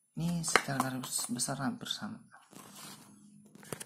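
A cardboard box is set down on a tile floor.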